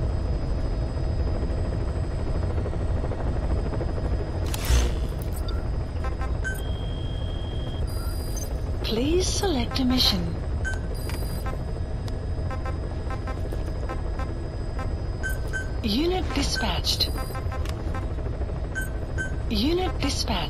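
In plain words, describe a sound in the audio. A helicopter's engine rumbles steadily.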